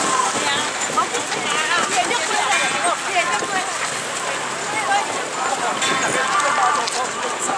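Many footsteps shuffle on pavement.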